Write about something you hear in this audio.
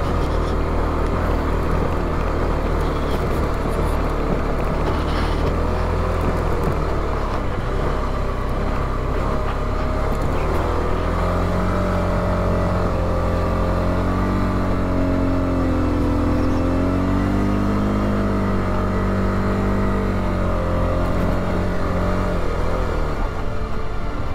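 A motorcycle engine rumbles and its pitch rises and falls as the bike rides over rough ground.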